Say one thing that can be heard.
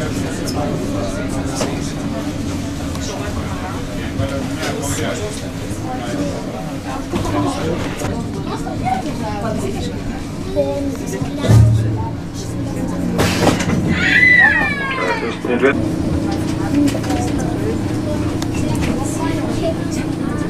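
A subway train idles with a steady low hum in a large echoing hall.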